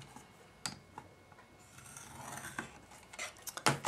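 A stylus scrapes softly along paper.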